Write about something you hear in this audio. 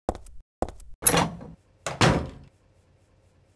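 A door creaks open and bangs shut.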